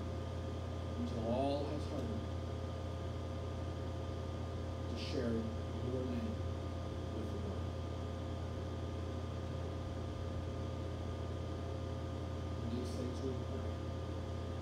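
A man speaks slowly with long pauses into a microphone over loudspeakers.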